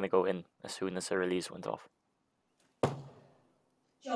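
An arrow thuds into a target.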